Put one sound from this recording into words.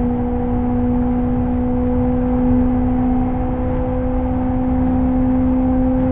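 Tyres rumble on the track.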